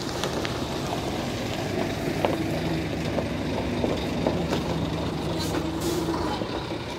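A diesel coach bus engine rumbles as the bus pulls away.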